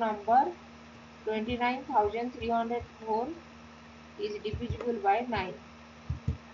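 A woman explains calmly into a close microphone.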